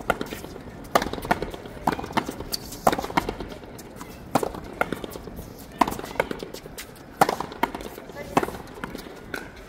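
A ball smacks hard against a wall and rebounds, echoing in a large hall.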